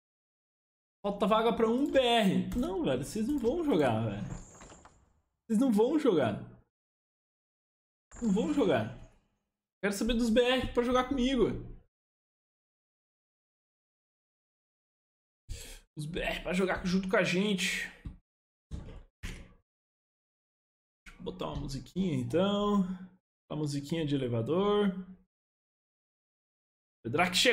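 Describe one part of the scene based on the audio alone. A young man talks casually and close to a microphone, in short bursts with pauses.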